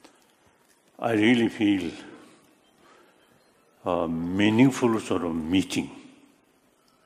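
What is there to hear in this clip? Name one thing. An elderly man speaks slowly into a microphone over a loudspeaker in a large hall.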